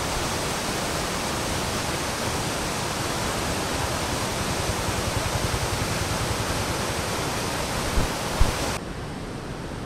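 Muddy water rushes loudly down a rocky stream.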